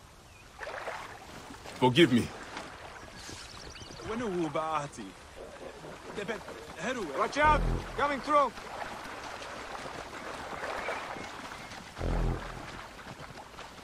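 Water laps and splashes around a boat being poled along.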